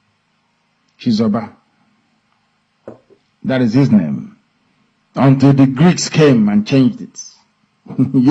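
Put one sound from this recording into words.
A man speaks close to a microphone, calmly, in short bursts with pauses.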